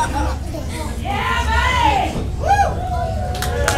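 A woman shouts loudly nearby.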